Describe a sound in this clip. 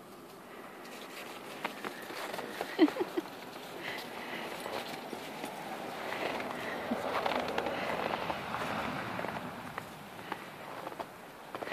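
Footsteps crunch on packed snow.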